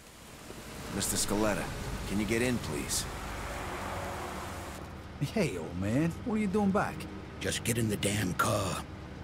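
Men talk in low, tense voices.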